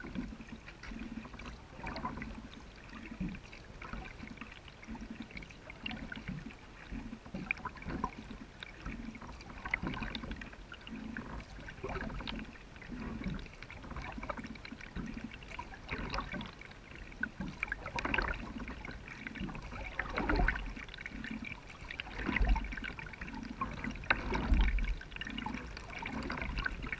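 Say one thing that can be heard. A kayak paddle dips and splashes in calm water in an even rhythm.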